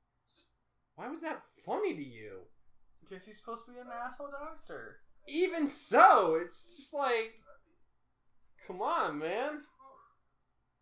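A young man speaks close by with animation, his voice sliding up and down.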